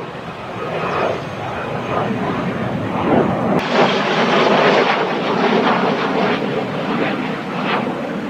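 Flares pop and crackle in the air.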